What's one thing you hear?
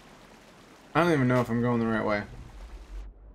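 A man speaks loudly into a close microphone.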